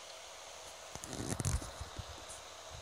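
Fingers rub and bump against a phone close by, making a loud rustling.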